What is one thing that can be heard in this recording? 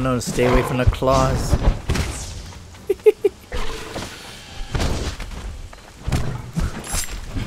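Weapons strike and thud in a fight.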